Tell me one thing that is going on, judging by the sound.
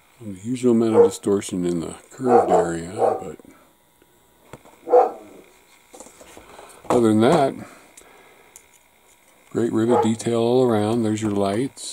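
Hard plastic parts click and rattle softly as they are handled.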